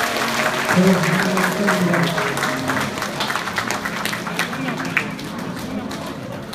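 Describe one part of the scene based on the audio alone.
A man sings into a microphone through loudspeakers in a large echoing hall.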